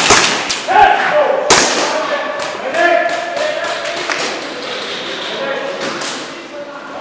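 Guns fire sharp single shots in a large echoing hall.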